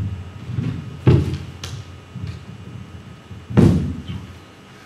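Knocks and thumps on a microphone sound now and then.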